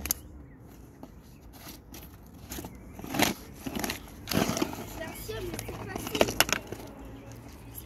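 Skate wheels roll over paving stones.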